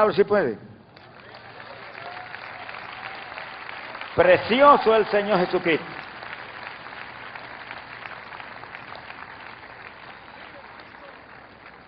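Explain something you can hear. A large crowd cheers and applauds in an open stadium.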